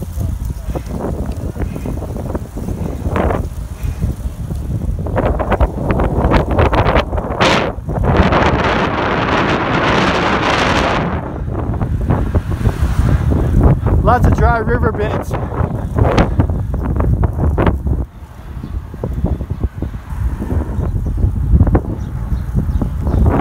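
Wind buffets loudly against a microphone outdoors.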